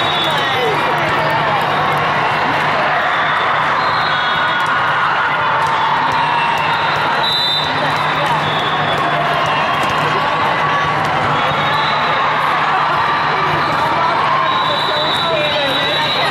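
Squeaky sneakers chirp on a hard court.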